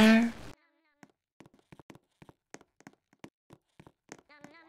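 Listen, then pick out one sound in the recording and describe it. Footsteps tap steadily along a hard floor.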